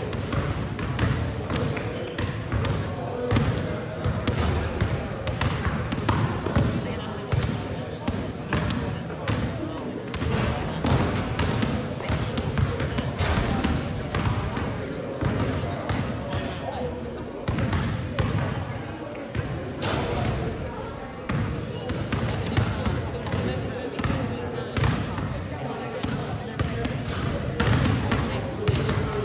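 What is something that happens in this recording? Basketballs bounce on a hard floor, echoing through a large hall.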